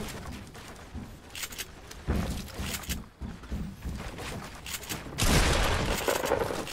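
Building pieces snap into place with quick hollow knocks.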